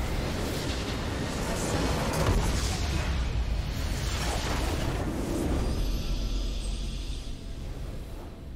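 A large crystal structure explodes with a loud rumbling crash.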